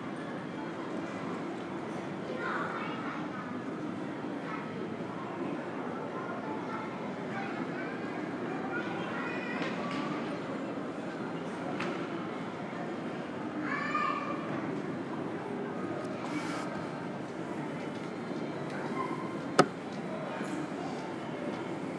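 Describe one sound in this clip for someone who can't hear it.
Faint, distant chatter echoes through a large hall.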